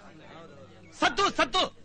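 A man shouts loudly.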